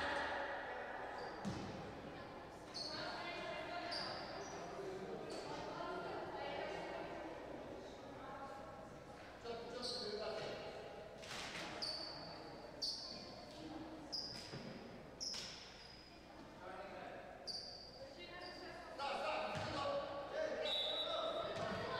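Players call out to each other across an echoing hall.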